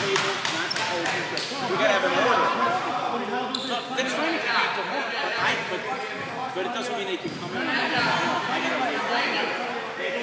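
Voices of several people chatter and call out in a large echoing gym.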